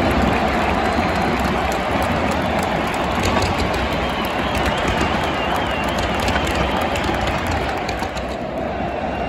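Firecrackers crackle and pop rapidly in the stands.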